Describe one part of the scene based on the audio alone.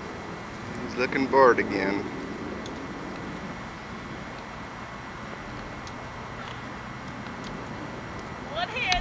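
A woman speaks brightly nearby.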